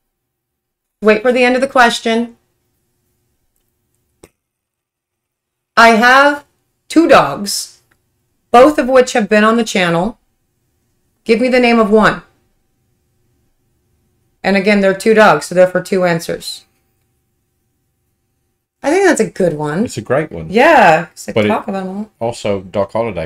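A woman speaks with animation close to a microphone, in short bursts with pauses.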